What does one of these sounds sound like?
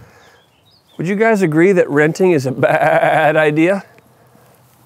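Goats bleat loudly nearby.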